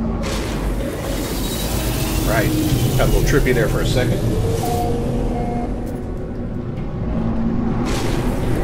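A spacecraft engine rumbles low and steadily.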